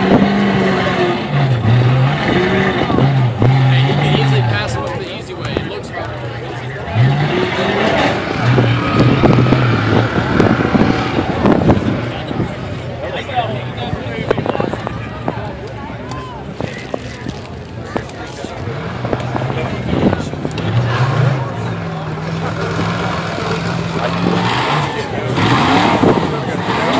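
A crowd of spectators talks and calls out outdoors.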